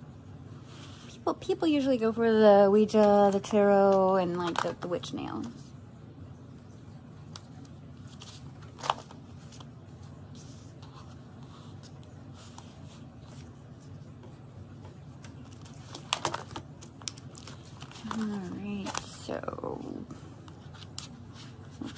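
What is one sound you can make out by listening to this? Plastic binder pages rustle and flap as they are turned.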